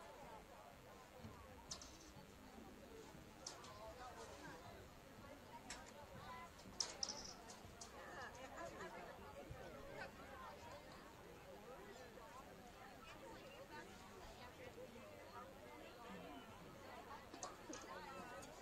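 A crowd of children and adults chatters and calls out at a distance outdoors.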